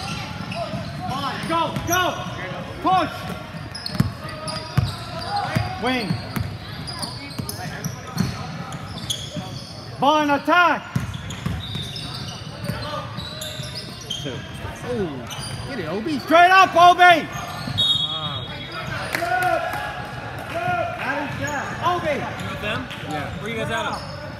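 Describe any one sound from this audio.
Spectators shout and cheer in an echoing gym.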